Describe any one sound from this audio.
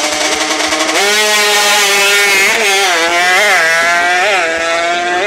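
A motorcycle roars off, its engine climbing in pitch through quick gear changes.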